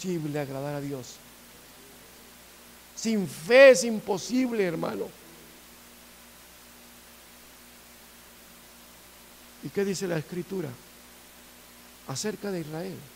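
A middle-aged man speaks with animation in short bursts, with pauses in between.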